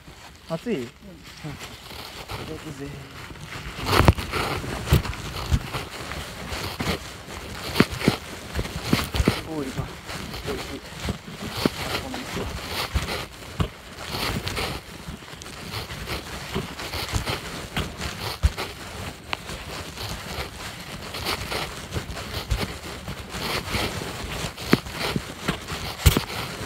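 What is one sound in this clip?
Footsteps crunch and rustle through dry fallen leaves.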